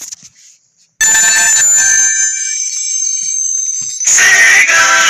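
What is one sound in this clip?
A bright electronic startup jingle chimes.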